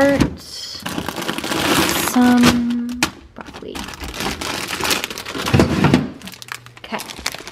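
A plastic bag of vegetables crinkles and rustles close by.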